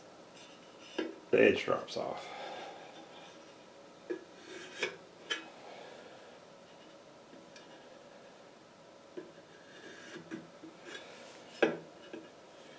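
A metal tool clinks against a steel wheel rim.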